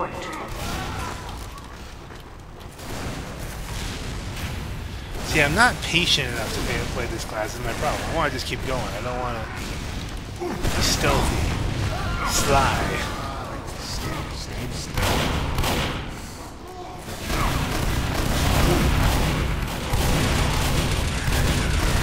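Gunshots and blasts pop in the distance.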